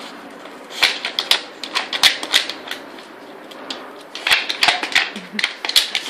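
A dog sniffs and snuffles loudly at a wooden puzzle toy.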